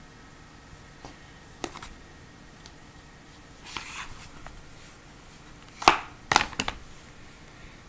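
A tablet in a case knocks softly as it is handled.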